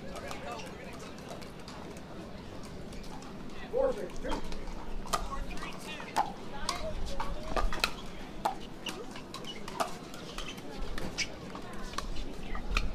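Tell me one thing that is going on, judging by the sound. Paddles strike a plastic ball with sharp pops in a quick rally.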